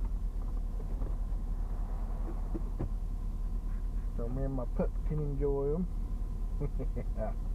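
A car engine idles, heard from inside the car.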